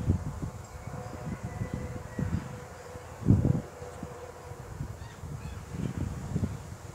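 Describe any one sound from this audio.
A horse's hooves thud softly on grass.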